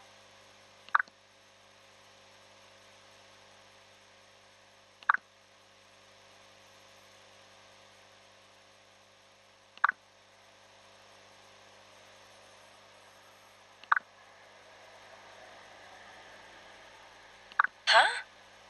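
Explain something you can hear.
A short electronic blip sounds every few seconds.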